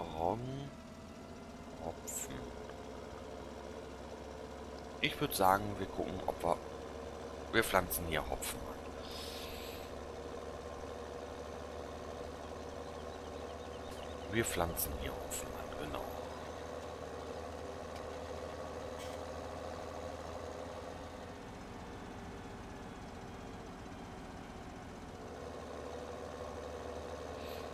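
A tractor engine hums steadily as it drives along.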